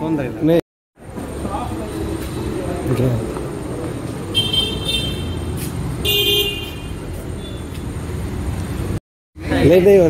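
Traffic hums steadily in the distance outdoors.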